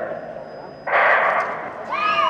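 A starting pistol fires with a sharp crack.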